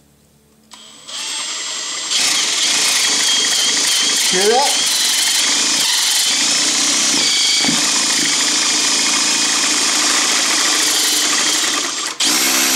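A cordless drill whirs steadily.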